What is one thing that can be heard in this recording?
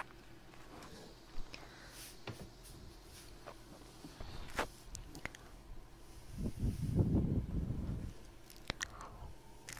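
A young woman's lips make soft clicking mouth sounds and kisses close to a microphone.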